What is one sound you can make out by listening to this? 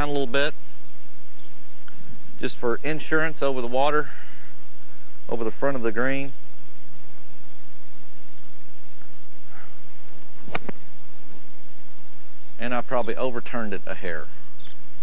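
A man speaks calmly to the listener, close by.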